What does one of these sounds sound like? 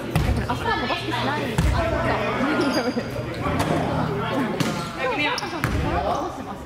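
A basketball thumps as it bounces on a wooden floor.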